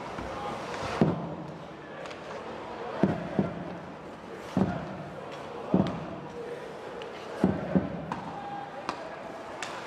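Hockey sticks and a puck clack sharply on the ice and boards.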